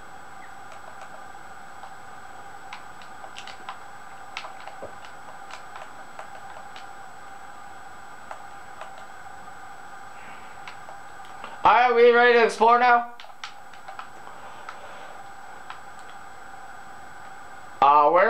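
Soft clicks and taps come from a video game.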